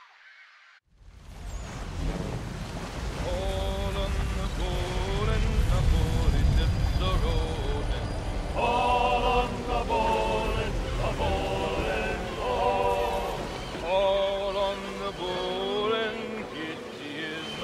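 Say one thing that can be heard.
Waves churn and splash against the hull of a sailing ship at sea.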